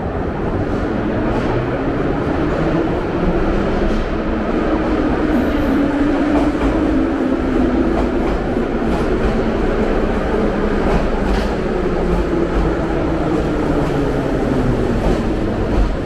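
A train's motors whine, rising and then falling in pitch.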